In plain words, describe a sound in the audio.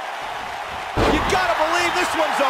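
A body slams down onto a wrestling mat with a thud.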